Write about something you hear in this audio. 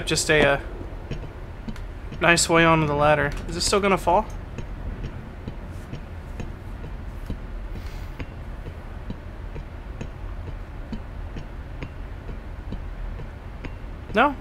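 Metal ladder rungs clank softly with each climbing step.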